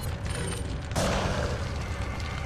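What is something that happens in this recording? A fire crackles and roars nearby.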